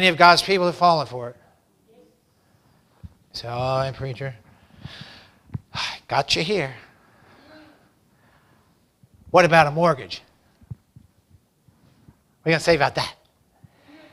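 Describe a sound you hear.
A middle-aged man speaks with emphasis through a microphone, in short bursts with pauses.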